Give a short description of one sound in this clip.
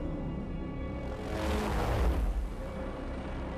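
Helicopter rotors thump loudly as helicopters fly past.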